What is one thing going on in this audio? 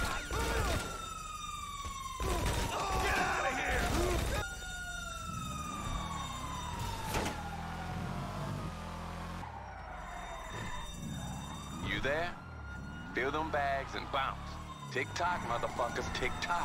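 Police sirens wail and slowly fall in pitch.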